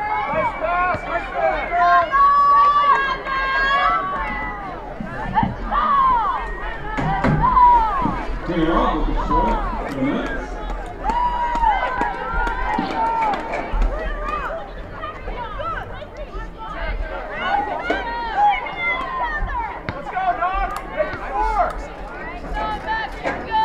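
Players call out to one another across an open field.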